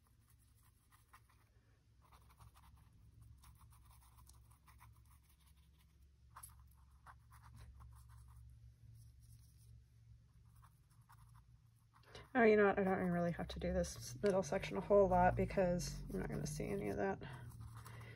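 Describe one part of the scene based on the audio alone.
A brush scrapes and dabs softly on paper.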